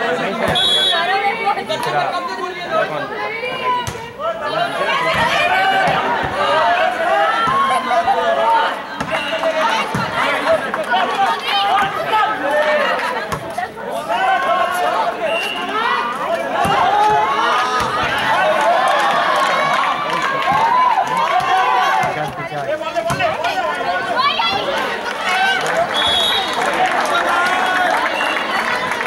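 A crowd of young women and girls chatters and cheers loudly outdoors.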